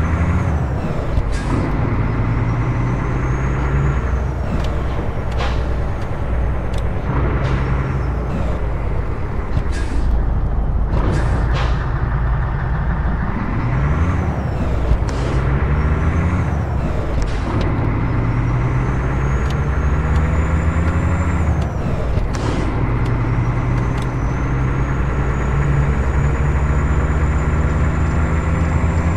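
A truck engine rumbles steadily, rising and falling in pitch as gears change.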